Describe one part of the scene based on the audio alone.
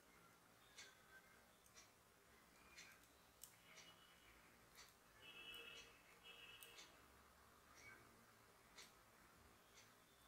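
Metal knitting needles click and tap softly against each other.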